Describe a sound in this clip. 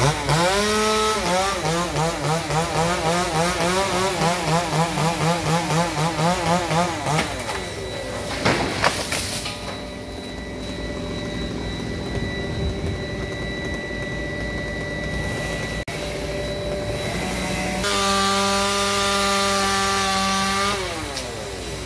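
A chainsaw revs and whines in bursts.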